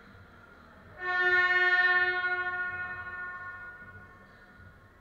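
A buzzer sounds loudly in a large echoing hall and rings out.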